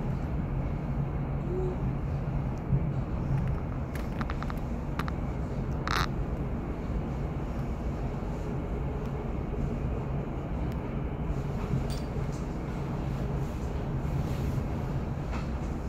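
A train rumbles steadily along the tracks, heard from inside.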